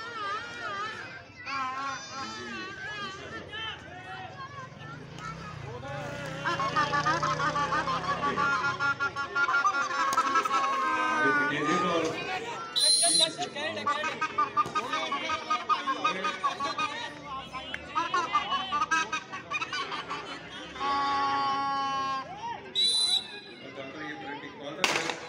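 A crowd of men cheers and shouts at a distance.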